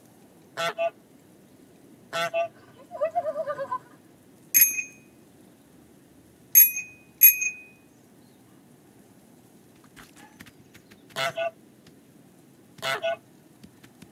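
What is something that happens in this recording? A goose honks loudly in short bursts.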